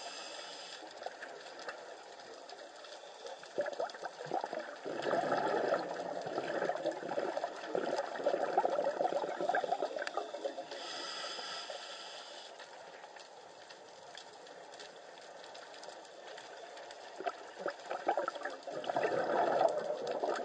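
Water surges and crackles, heard muffled from underwater.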